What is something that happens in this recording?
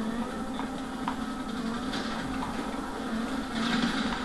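A helicopter's rotor whirs overhead.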